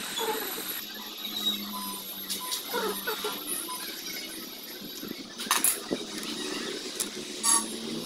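Metal tools clink and scrape against an engine.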